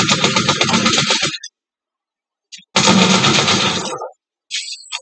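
Gunfire from a video game bursts loudly through a loudspeaker.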